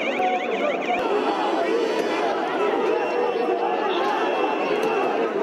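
A large crowd shouts and chants outdoors, close by.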